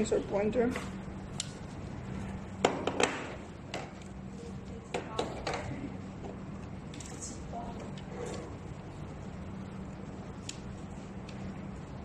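Plastic parts click and clack as cables are plugged into a small box.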